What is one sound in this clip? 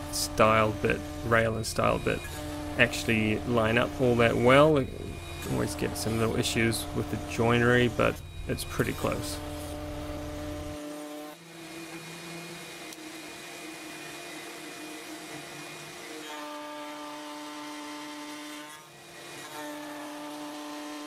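A router motor hums with a steady whine.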